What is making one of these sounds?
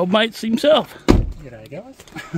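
A car door slams shut with a thud.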